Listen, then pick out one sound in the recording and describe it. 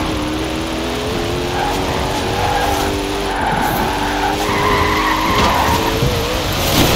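A sports car engine roars at high speed, its pitch rising and shifting through gears.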